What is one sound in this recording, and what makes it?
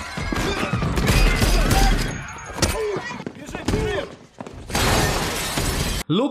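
Bodies thud in a scuffle.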